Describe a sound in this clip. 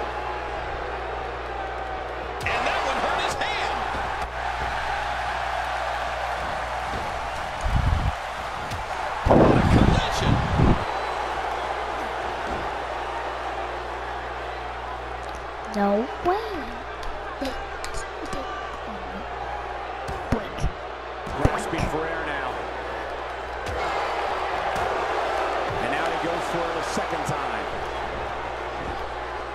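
A large crowd cheers steadily.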